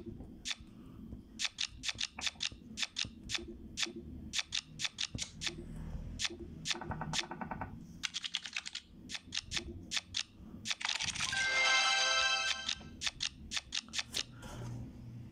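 Short, sharp card clicks sound in quick bursts as cards are moved in a game.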